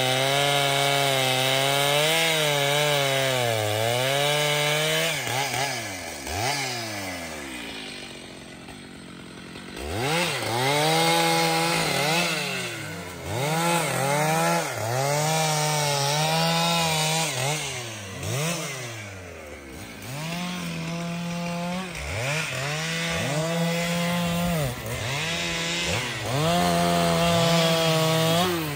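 A chainsaw engine revs loudly, rising and falling in pitch.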